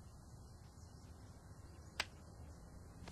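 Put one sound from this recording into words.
A lighter clicks and sparks.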